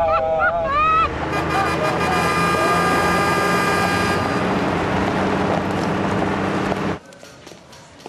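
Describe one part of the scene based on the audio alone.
A heavy truck roars past on a road, its tyres humming loudly.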